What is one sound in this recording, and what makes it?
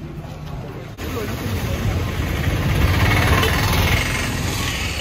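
Motorbikes and auto rickshaws drive past with buzzing engines.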